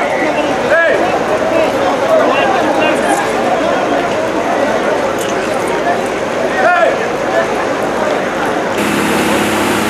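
Men shout to one another outdoors.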